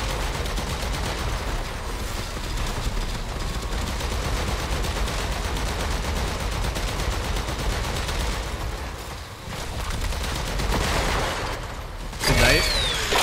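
Energy weapons crackle and blast rapidly.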